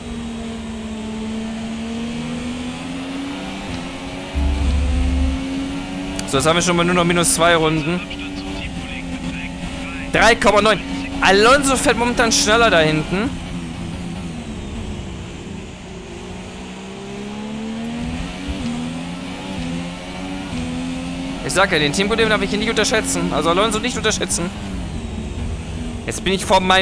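A racing car engine whines steadily, rising in pitch as it speeds up and dropping when it slows.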